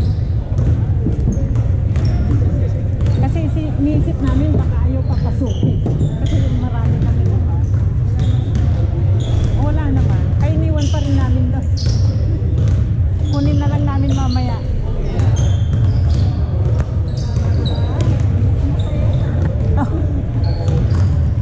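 Basketballs bounce on a hardwood floor in a large echoing gymnasium.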